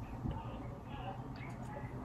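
A woman gulps a drink from a bottle.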